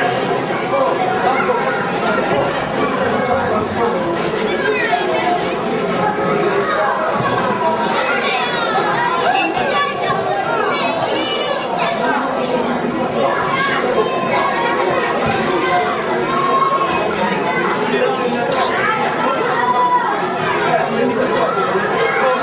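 A large crowd of children and adults chatters loudly in an echoing hall.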